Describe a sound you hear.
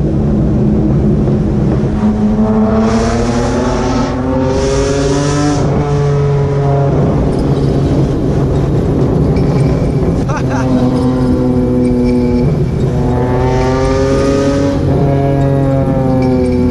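A car engine roars loudly, revving up and down through the gears.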